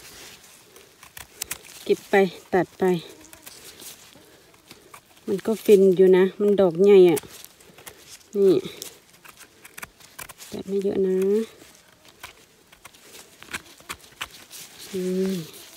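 A knife scrapes dirt off a mushroom stem.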